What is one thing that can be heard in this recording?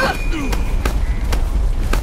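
Punches land with dull thuds in a scuffle.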